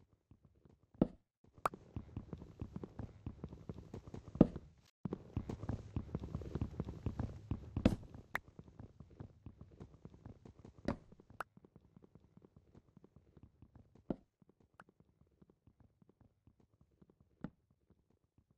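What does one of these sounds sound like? Wooden blocks break apart with a sudden crack.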